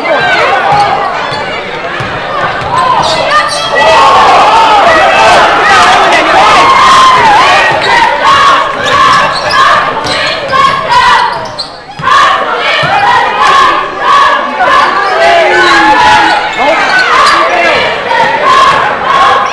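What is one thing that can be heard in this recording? A basketball thumps as it is dribbled.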